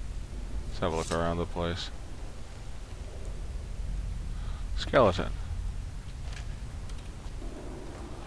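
Footsteps scuff across stone.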